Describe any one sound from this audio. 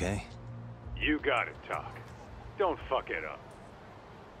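A man's voice answers through a phone with animation.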